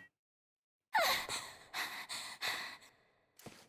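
A young woman speaks softly.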